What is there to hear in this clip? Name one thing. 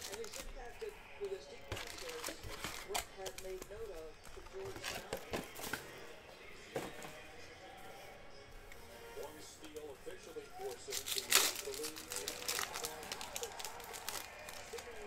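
Foil card packs crinkle in hands.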